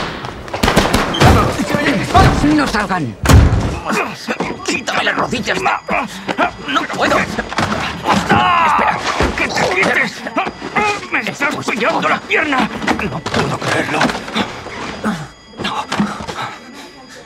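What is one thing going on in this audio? A young man gasps and pants heavily up close.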